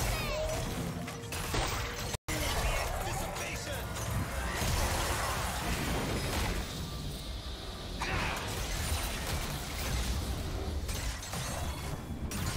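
Magic spells whoosh and crackle as game characters clash in battle.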